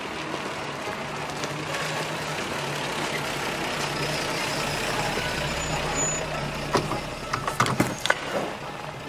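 A car engine idles and rumbles as a car rolls slowly by.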